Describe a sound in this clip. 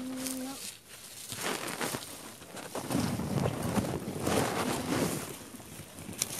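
A small hand hoe scrapes through dry soil.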